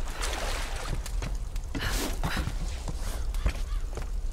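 Thuds knock against wooden planks.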